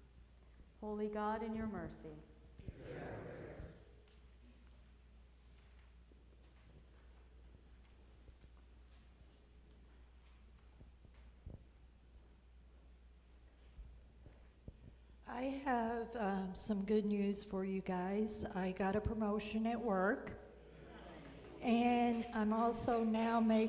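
A woman sings a solo in a large echoing church.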